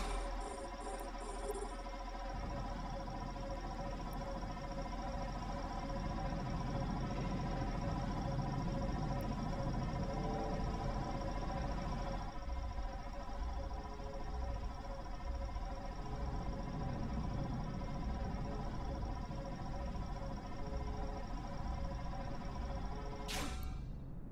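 A laser beam hums steadily with a low rumble.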